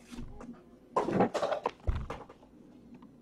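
A cardboard box lid slides off with a soft scrape.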